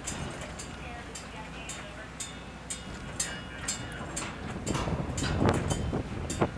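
Sea water rushes and splashes against a ship's hull.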